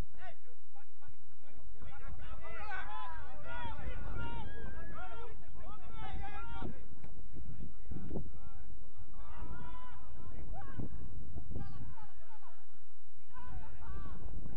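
Several men shout and call out across an open outdoor field.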